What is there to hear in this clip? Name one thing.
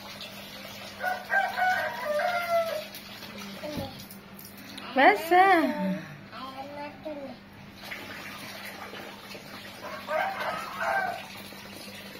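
A young girl talks and squeals playfully close by.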